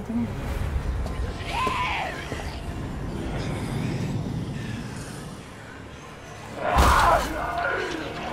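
A zombie lets out a loud, rasping snarl.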